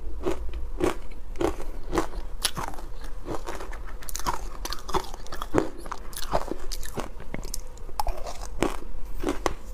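A spoon scrapes and crunches through powdery shaved ice close to a microphone.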